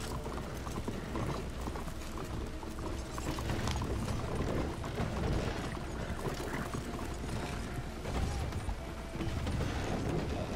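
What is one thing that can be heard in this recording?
Wooden wagon wheels rattle and creak over the ground.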